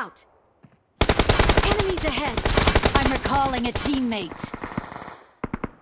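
A gun fires in a rapid burst of shots.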